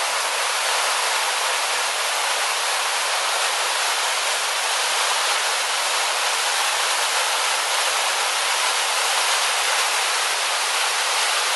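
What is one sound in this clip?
A waterfall rushes and splashes steadily over rocks close by.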